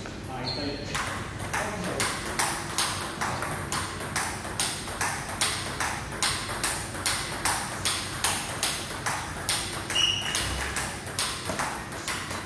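A ping-pong ball clicks back and forth rapidly between paddles and a table in an echoing hall.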